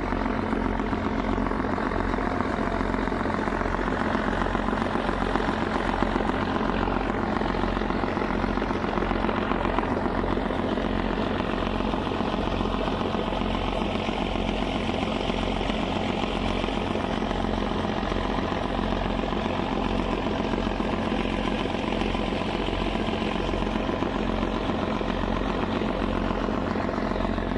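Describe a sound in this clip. A boat engine rumbles steadily close by.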